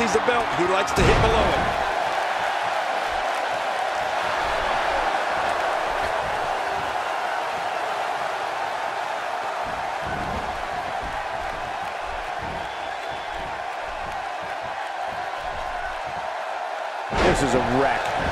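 A body slams hard onto a wrestling ring mat.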